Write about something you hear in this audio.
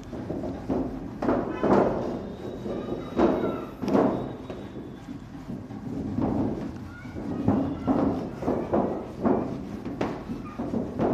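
A duster rubs across a chalkboard in short scrubbing strokes.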